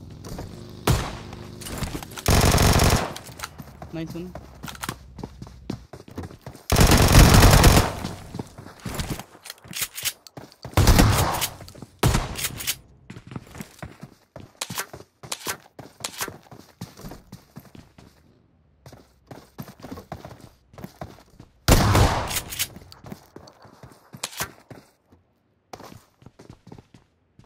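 Footsteps patter quickly across hard floors.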